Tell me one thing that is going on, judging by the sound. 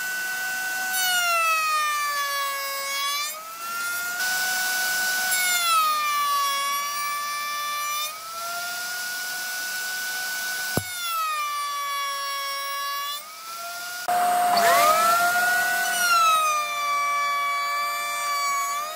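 A router bit cuts into a hardwood board, and the motor's pitch drops under the load.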